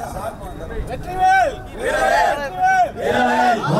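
A man shouts a slogan loudly.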